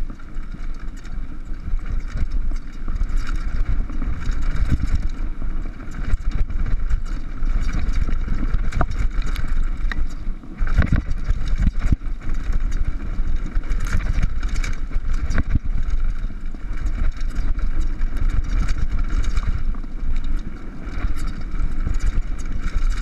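Wind buffets loudly against a moving rider.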